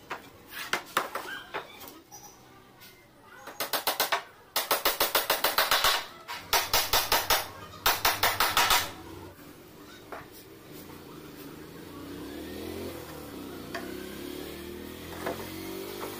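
Wooden boards knock and scrape as they are moved.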